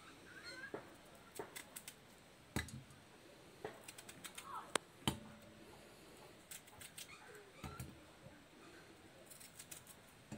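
A knife cuts through a firm vegetable.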